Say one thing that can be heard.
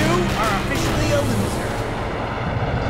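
Game sound effects zap and clash during a fight.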